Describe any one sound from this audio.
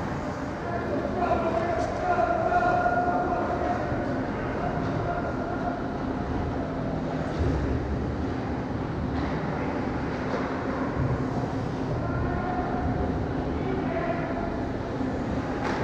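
Young players shout to each other across the echoing rink.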